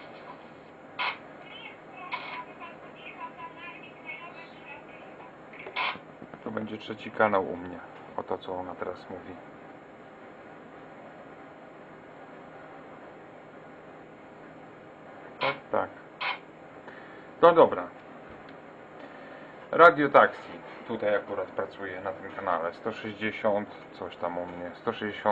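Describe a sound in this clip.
Crackling radio signals come in short bursts.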